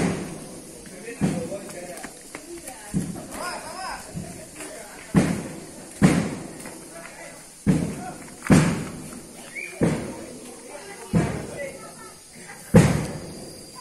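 A string of firecrackers pops and bangs loudly outdoors, echoing off nearby walls.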